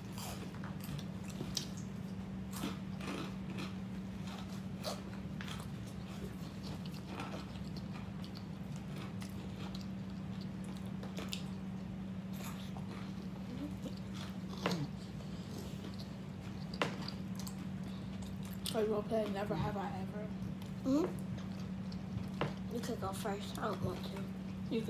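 Children chew and munch food loudly.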